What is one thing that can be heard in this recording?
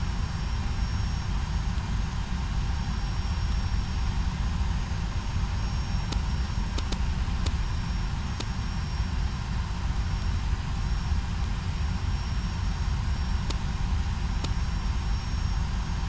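A low engine rumble drones steadily.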